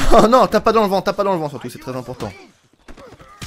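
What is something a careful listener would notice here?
A man shouts angrily nearby.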